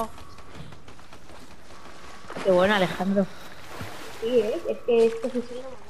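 A game character splashes through shallow water.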